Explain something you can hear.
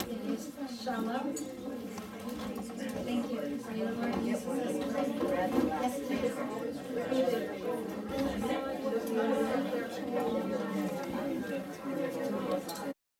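Many adults chatter over one another.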